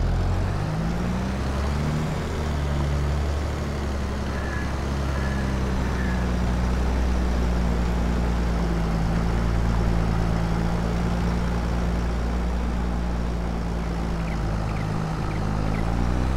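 A cultivator rattles and scrapes through the soil.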